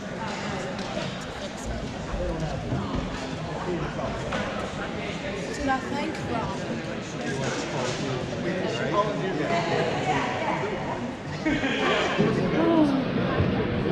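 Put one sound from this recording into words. A crowd of people chatter in a large echoing gym.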